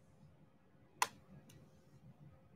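Fingertips press and click on small plastic beads.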